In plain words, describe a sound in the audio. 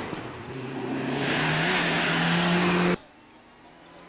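A rally car roars loudly as it races past close by.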